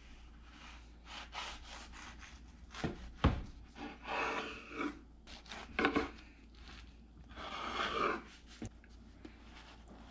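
A knife saws through a crusty bread roll.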